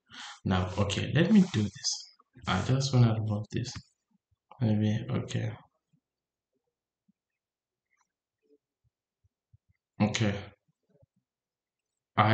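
A man speaks calmly into a microphone, explaining in short bursts with pauses.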